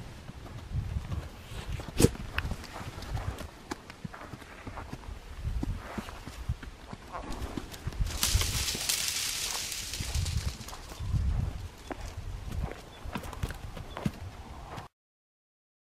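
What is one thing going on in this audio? A horse's hooves thud slowly on dirt.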